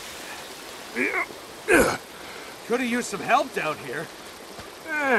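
A man calls out loudly for help.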